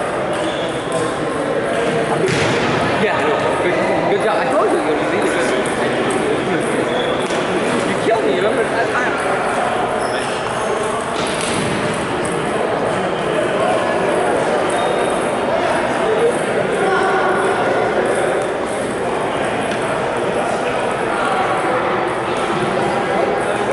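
A ping-pong ball clicks back and forth across a table and bats.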